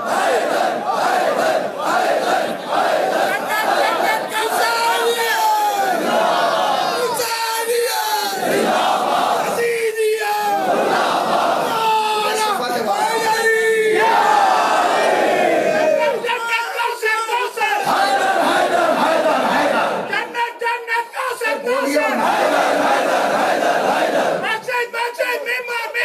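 A large crowd of men chants loudly together in a rhythm.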